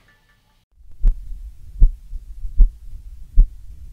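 A heartbeat thumps steadily, heard through a microphone.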